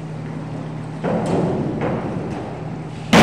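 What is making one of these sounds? A diving board thumps and rattles.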